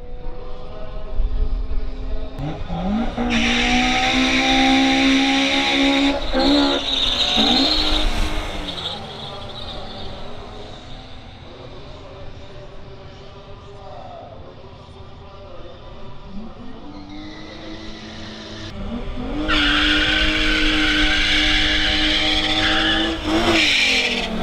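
Car engines rev loudly and roar as they pull away.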